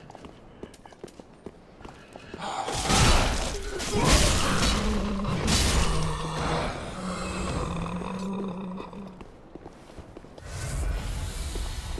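Armoured footsteps tread on stone and grass.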